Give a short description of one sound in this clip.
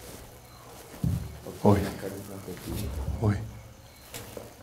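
A man speaks with animation in a hushed, close voice.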